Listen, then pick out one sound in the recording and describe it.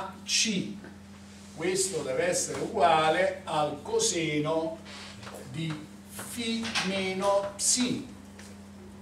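A man speaks steadily from a short distance.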